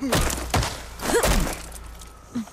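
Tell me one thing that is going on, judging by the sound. Heavy blows thud and whoosh in a close fight.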